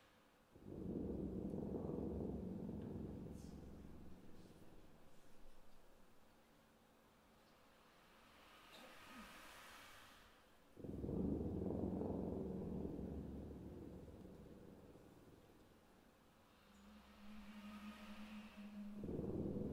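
An orchestra plays deep, swelling chords that ring out in a large hall.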